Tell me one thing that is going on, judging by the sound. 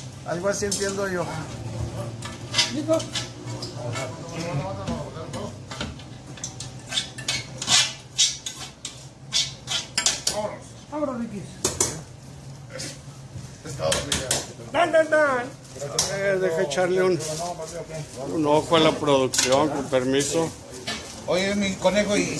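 Men talk nearby with animation.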